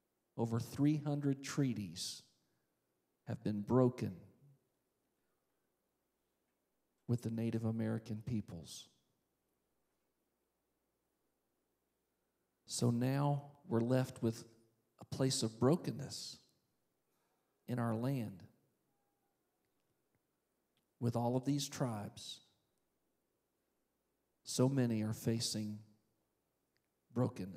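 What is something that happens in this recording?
A man speaks calmly into a microphone, in pauses, heard through loudspeakers in a large hall.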